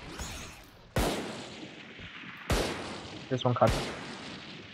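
Single gunshots crack sharply and echo away.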